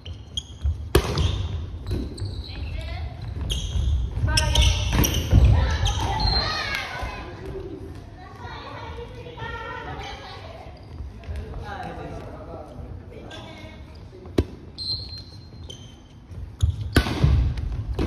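A ball smacks off hands with sharp slaps.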